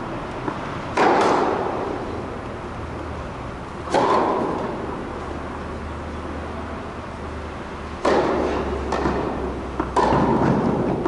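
A racket strikes a tennis ball with a sharp pop that echoes in a large hall.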